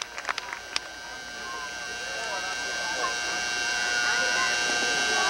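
A crowd murmurs and calls out in the distance.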